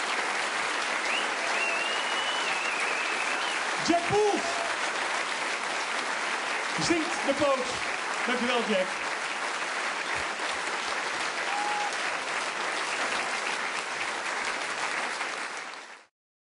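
A large crowd applauds and cheers loudly in a big hall.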